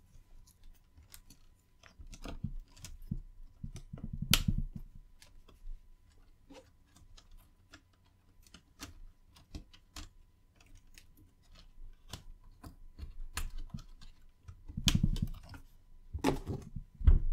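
Plastic cables rustle and click as hands work them into place.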